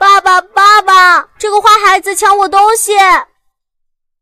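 A young girl speaks up close in a high, pleading voice.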